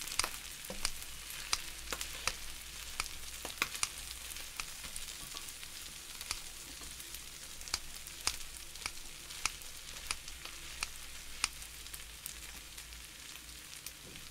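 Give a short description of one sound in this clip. Metal tongs click and scrape against a hot griddle.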